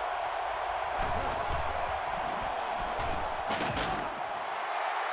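Football players collide with dull thuds.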